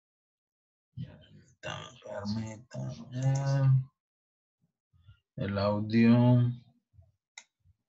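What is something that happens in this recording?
A man speaks calmly through a headset microphone.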